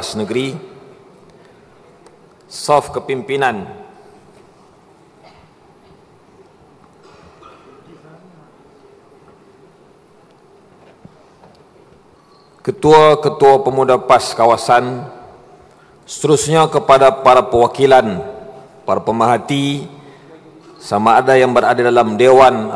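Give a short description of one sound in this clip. A young man speaks formally through a microphone.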